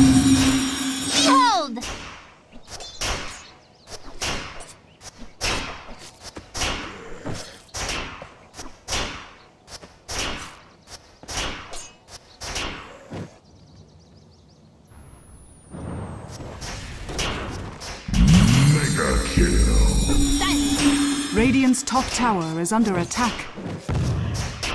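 Fantasy battle sound effects crackle and burst with rapid magical blasts and strikes.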